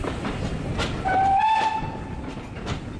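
A steam locomotive whistle sounds nearby.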